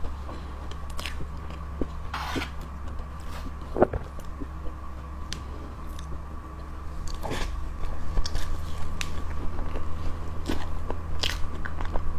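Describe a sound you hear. A metal spoon scrapes and taps against a plate of cream cake.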